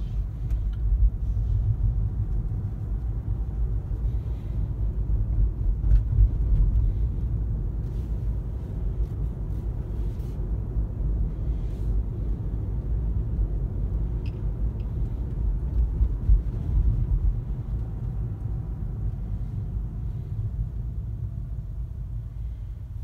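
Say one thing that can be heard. A car engine hums low and steady from inside a moving car.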